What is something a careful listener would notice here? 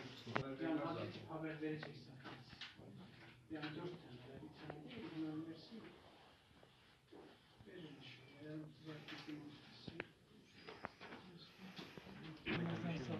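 Several men talk nearby at once.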